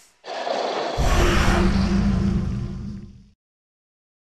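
A loud explosion bursts and rumbles, then fades.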